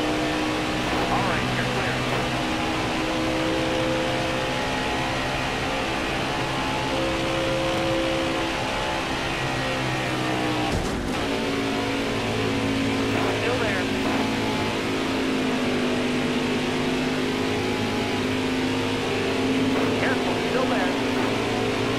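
A V8 stock car engine roars at full throttle.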